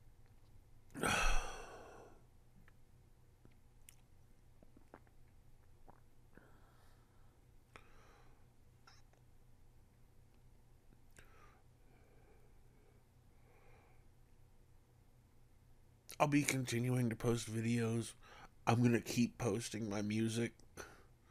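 A man speaks close to a microphone in a calm, deep voice.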